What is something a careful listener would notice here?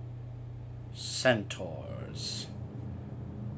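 Game swords clash in a short fight.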